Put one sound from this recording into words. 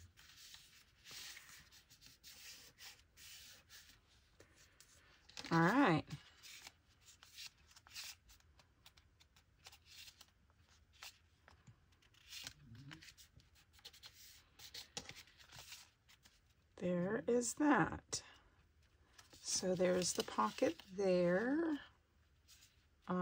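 Paper rustles and crinkles as it is folded and handled.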